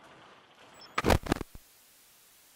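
A gunshot cracks nearby.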